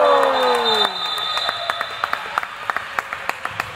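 A ball bounces on the floor in an echoing hall.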